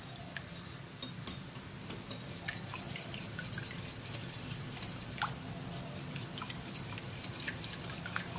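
A wire whisk beats eggs, clinking against a glass bowl.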